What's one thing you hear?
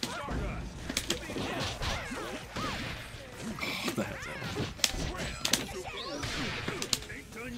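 Upbeat game music plays throughout.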